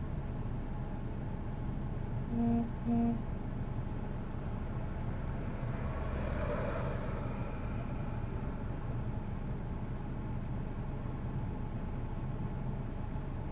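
A car engine rumbles steadily.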